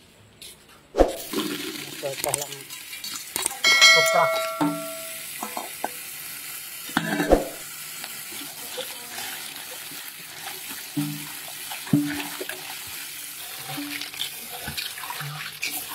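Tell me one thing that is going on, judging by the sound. Tap water splashes steadily into a basin.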